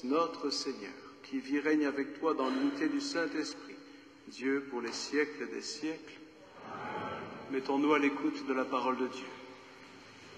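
A man speaks steadily through a microphone in a large echoing hall.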